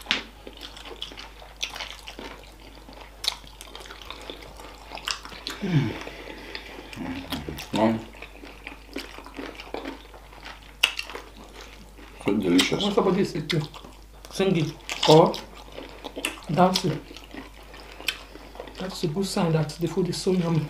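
Wet, sticky food squelches and smacks as it is chewed up close.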